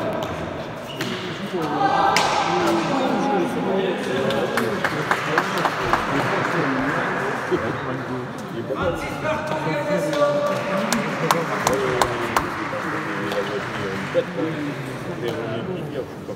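Men shout and cheer loudly nearby.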